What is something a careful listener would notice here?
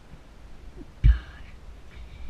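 A bicycle bumps hard up onto a kerb.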